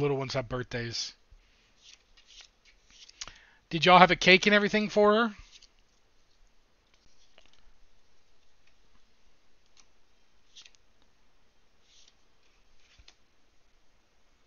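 Playing cards slide and flick softly against each other.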